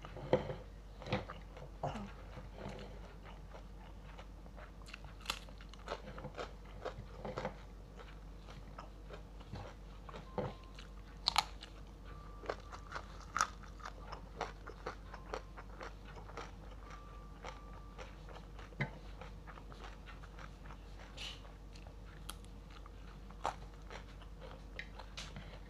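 Fingers pick at rice and fried salted fish on a ceramic plate, with small clicks and taps.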